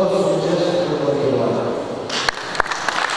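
An elderly man speaks into a microphone, heard through a loudspeaker in a large echoing hall.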